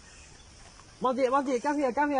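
A young man speaks loudly nearby.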